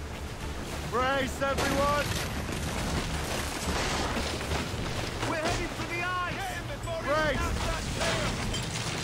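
Water splashes up loudly over a boat.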